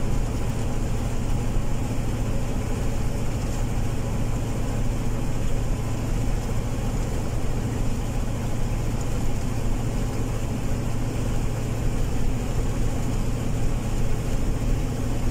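A vehicle's engine hums steadily from inside the cab as it drives along.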